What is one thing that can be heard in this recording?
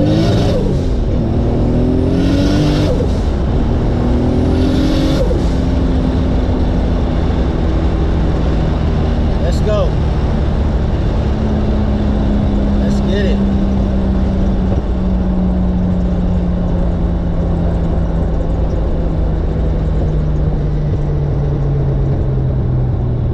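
A car engine revs hard, rising in pitch and dropping between gear changes, then drones steadily.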